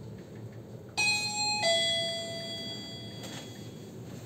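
An elevator chime rings twice.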